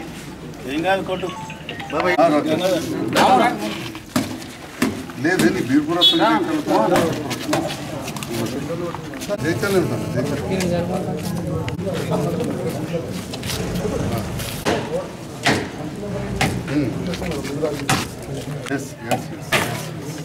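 Men talk and murmur nearby in a small crowd.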